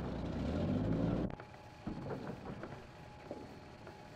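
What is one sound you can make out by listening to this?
A shovel scrapes on gravel.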